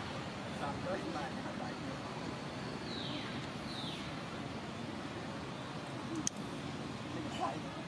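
Young monkeys squeak softly nearby.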